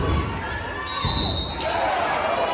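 A referee's whistle blows once, sharply.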